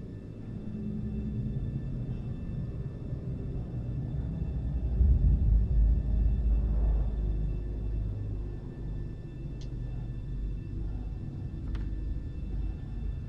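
Paper rustles as a hand handles a sheet.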